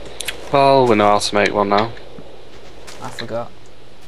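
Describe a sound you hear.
Leaves rustle as they are broken.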